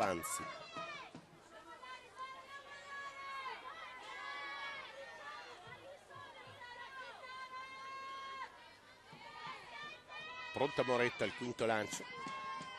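A crowd of spectators cheers and chants outdoors.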